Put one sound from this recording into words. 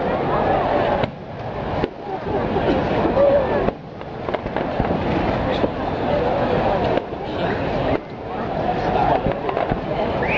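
Fireworks burst with bangs and crackles in the distance.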